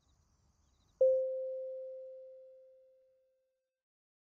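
An elevator bell chimes once and rings out.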